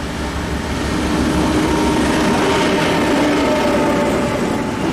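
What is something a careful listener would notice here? Train wheels rattle and clatter over the rails up close.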